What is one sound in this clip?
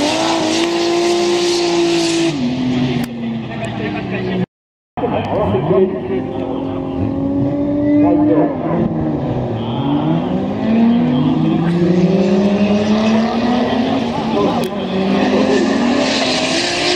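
Racing car engines roar loudly and rev up and down.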